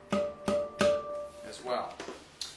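A handpan rings with a few struck notes.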